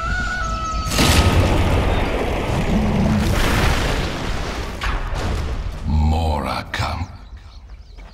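Game spell effects whoosh and explode in a fight.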